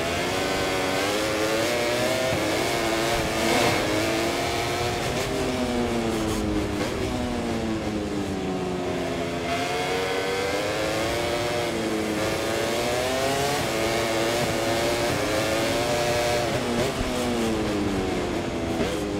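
A motorcycle engine screams at high revs, rising and falling in pitch as it shifts gears.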